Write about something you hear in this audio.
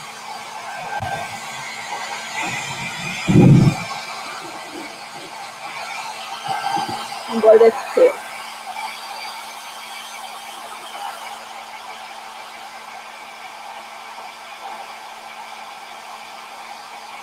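A hair dryer blows with a steady whirring rush.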